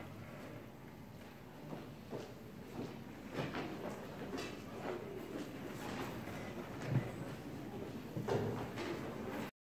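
A string orchestra plays in a large echoing hall.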